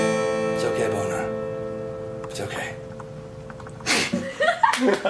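An acoustic guitar strums a chord that rings out and fades.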